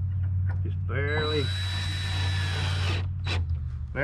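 A cordless drill whirs as it drives into wood.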